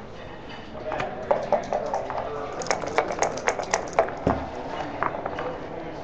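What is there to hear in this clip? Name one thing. Dice rattle in a cup and tumble onto a board.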